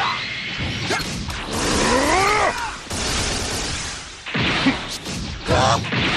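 Energy blasts whoosh and explode.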